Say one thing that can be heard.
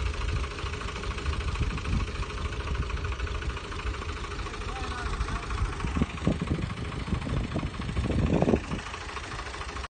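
A diesel tractor engine runs.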